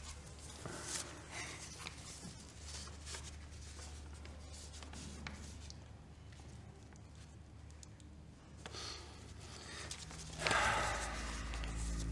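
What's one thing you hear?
An elderly man speaks softly and warmly, close by.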